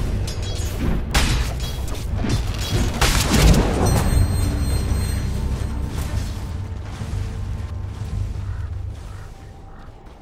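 Fantasy battle sounds clash and crackle with spell effects.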